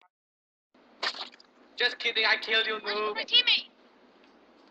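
A young woman shouts excitedly into a microphone.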